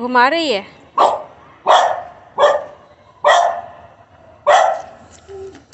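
A dog barks sharply several times.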